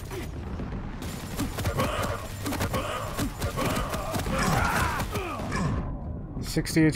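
Gunfire and blasts from a game go off rapidly.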